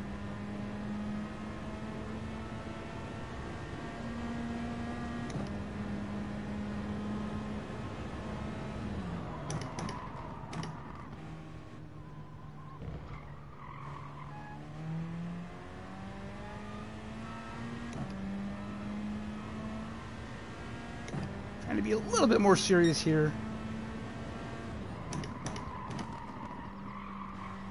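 A racing car engine revs up and down and shifts gears.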